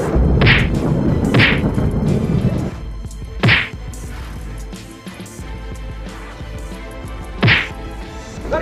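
Wooden boards knock and bang together.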